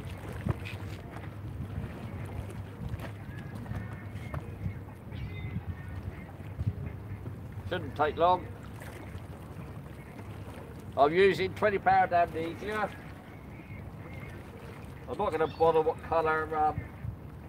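Wind blows steadily outdoors by the water.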